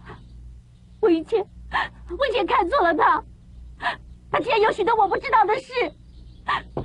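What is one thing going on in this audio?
A young woman speaks tearfully and urgently, close by.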